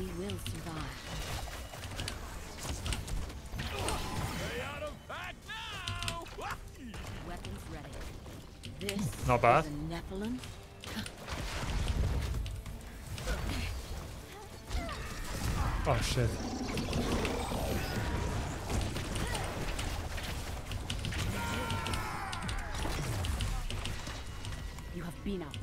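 Fantasy battle sounds of spells and blasts clash in a video game.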